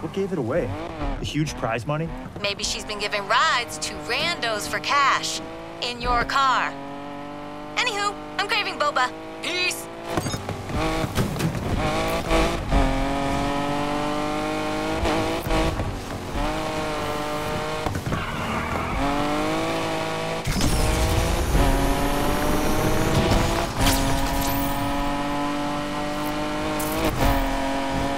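A car engine revs loudly, rising and falling in pitch as the gears change.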